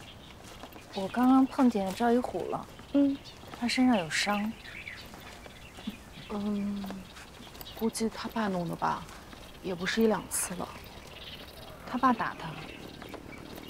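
A young woman speaks quietly and calmly, close by.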